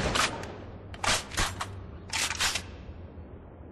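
A rifle's magazine clicks and clacks as it is reloaded.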